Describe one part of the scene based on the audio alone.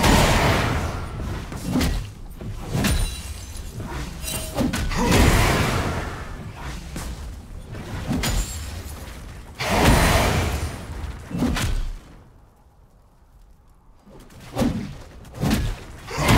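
Game fighters' attacks clash and thud.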